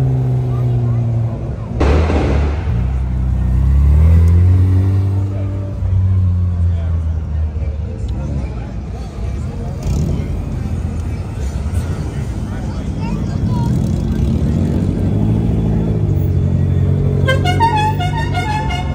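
Loud car engines rumble and rev as cars cruise past close by.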